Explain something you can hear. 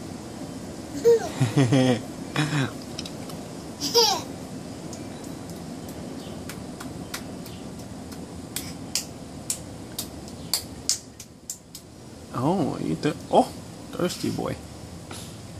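A young woman talks softly and playfully to a baby close by.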